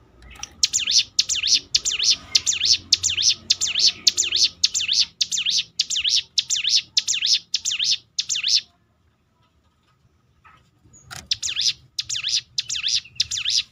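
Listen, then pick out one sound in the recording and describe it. A small bird sings close by in quick, repeated high chirps that break off for a moment.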